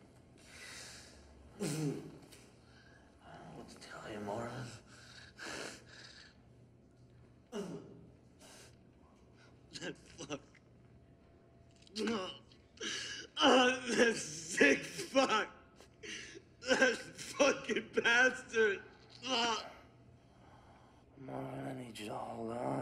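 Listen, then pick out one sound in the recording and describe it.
A young man talks in a strained, breathless voice close by.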